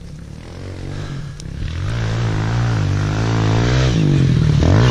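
A dirt bike engine revs loudly as it approaches.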